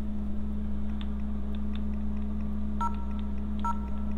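Electronic keypad buttons beep as they are pressed.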